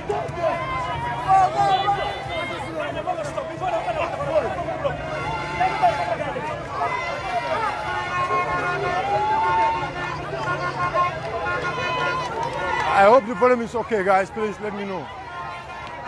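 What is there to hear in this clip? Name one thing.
A crowd of men and women shout and sing loudly outdoors.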